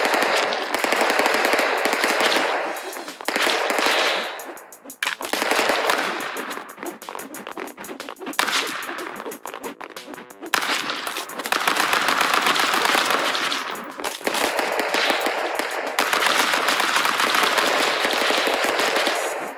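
Guns fire rapid shots.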